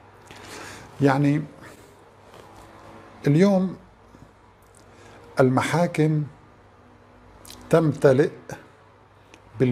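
A middle-aged man speaks calmly and close into a microphone, in short bursts with pauses.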